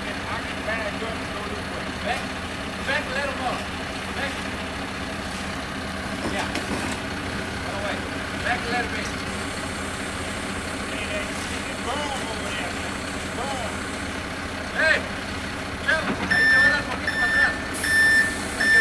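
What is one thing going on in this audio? A concrete mixer truck's engine rumbles steadily outdoors.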